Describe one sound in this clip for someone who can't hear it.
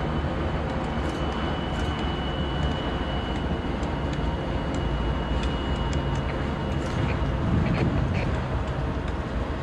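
A distant train rumbles low and slowly draws nearer.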